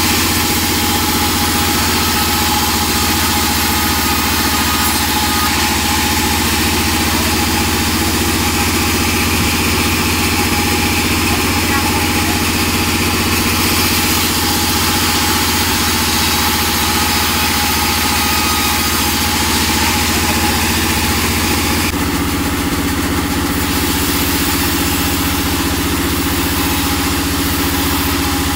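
A motor hums steadily and loudly.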